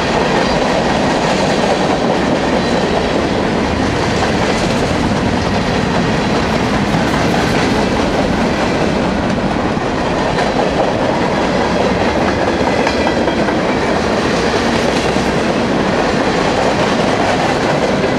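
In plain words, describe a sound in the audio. A long freight train rumbles past close by, its wheels clattering and squealing on the rails.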